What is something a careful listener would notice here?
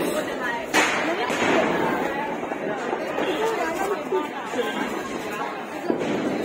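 A crowd of people chatter loudly nearby.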